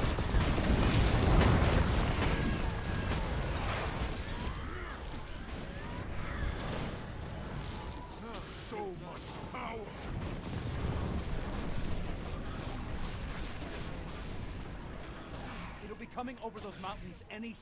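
Magic blasts crackle and whoosh amid a noisy battle.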